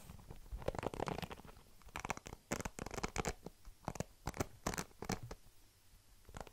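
Hairbrush bristles scratch against a foam microphone cover up close.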